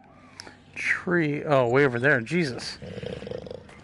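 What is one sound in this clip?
A small dinosaur gives warbling, chirping calls.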